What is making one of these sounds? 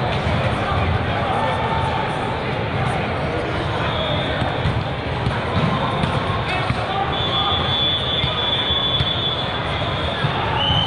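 A crowd chatters and shouts in a large echoing hall.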